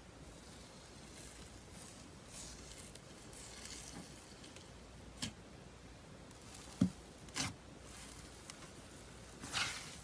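Sticky slime squishes and pops under pressing fingers.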